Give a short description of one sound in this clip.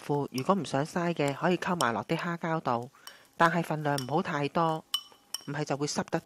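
A metal spoon stirs and clinks in a glass bowl.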